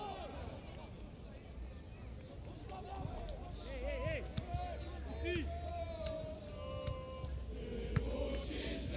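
A large stadium crowd chants and whistles loudly outdoors.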